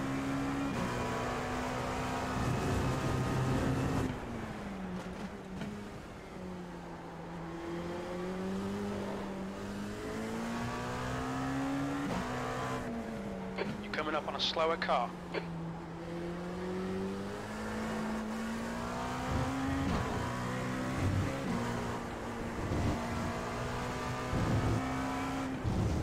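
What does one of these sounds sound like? A racing car engine roars, its pitch rising and falling as it shifts gears.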